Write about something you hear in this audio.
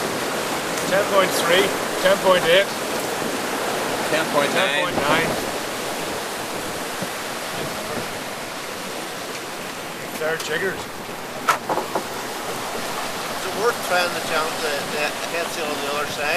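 A man talks loudly over the wind.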